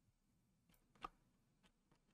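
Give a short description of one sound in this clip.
A short pop sounds as an item is picked up.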